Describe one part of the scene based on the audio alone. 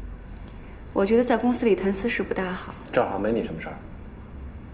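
A young woman speaks firmly, close by.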